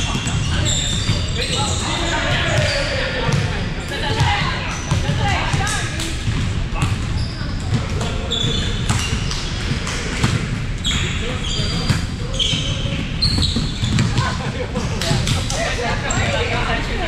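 A volleyball thumps as it is hit.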